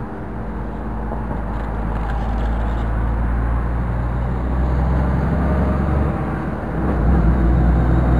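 Skateboard wheels roll and rumble on concrete.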